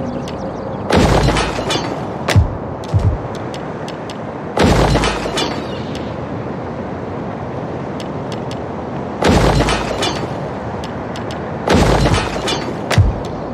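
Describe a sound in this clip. Buildings crash and rumble in short bursts as they are torn down.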